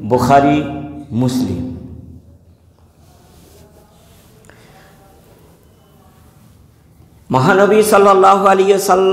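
An elderly man chants in a drawn-out, melodic voice close to a microphone.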